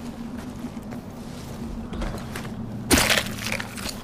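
A spear stabs into a large animal with a heavy thud.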